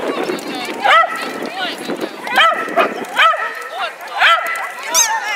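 A small dog yaps in short, high excited barks, again and again.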